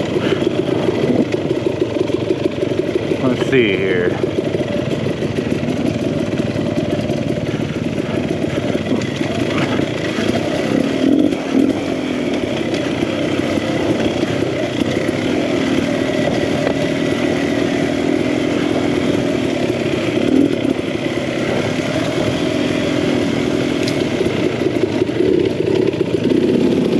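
Another dirt bike engine buzzes a little way ahead.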